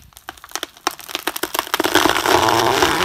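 Wood cracks and snaps as a tree gives way.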